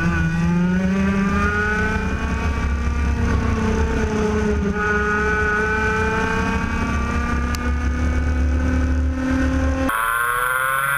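A kart engine buzzes loudly up close, its pitch rising and falling with speed.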